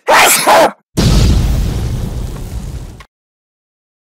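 A huge explosion booms with a deep, roaring rumble.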